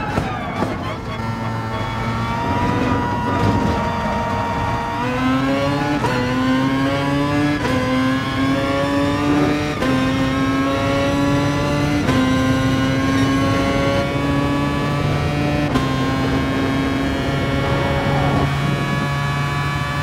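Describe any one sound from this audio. A racing car engine revs high, rising in pitch through each gear and dropping briefly at every gear change.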